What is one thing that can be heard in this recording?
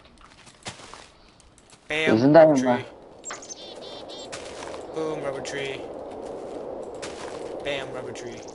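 Blocks of earth crunch and thud as they are dug out.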